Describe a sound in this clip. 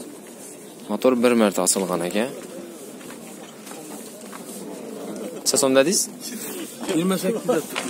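A man speaks loudly close by, in short bursts.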